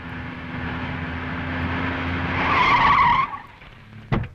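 A small car engine runs and the car pulls to a stop.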